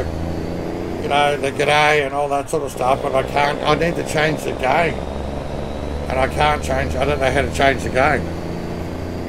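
A middle-aged man talks with animation into a microphone, close by.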